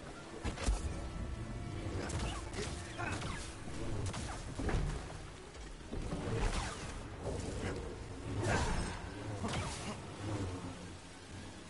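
Energy blades clash with sharp, crackling hits.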